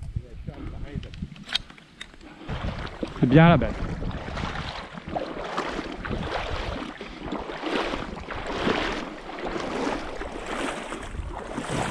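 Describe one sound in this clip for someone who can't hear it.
Water laps and splashes around a moving boat.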